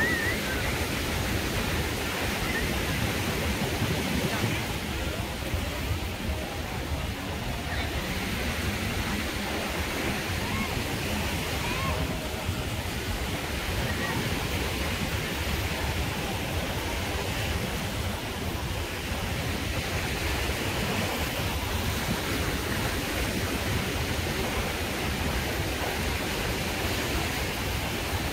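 Waves wash gently onto the shore.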